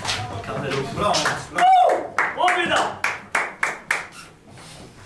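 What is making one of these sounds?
Young men shout and cheer loudly in a small echoing room.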